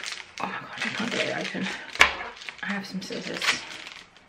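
Scissors snip through a plastic wrapper.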